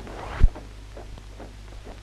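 Marching boots tramp in step on a deck.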